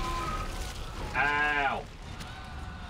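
A man screams in pain.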